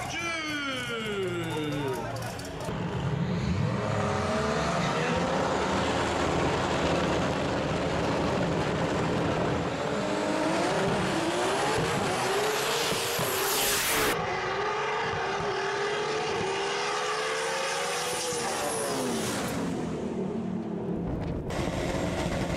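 Race car engines roar loudly, revving up and down.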